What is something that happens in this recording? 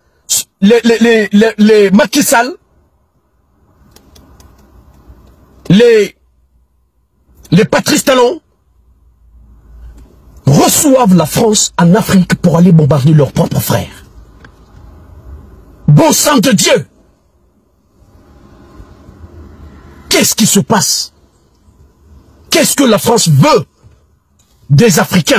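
A man talks with animation close to a phone microphone, in bursts with pauses.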